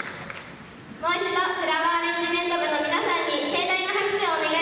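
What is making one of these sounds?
A man speaks through a microphone and loudspeaker in a large hall.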